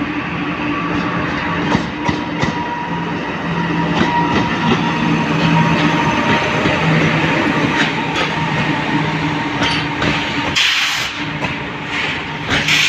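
Train wheels clatter and clack over the rail joints.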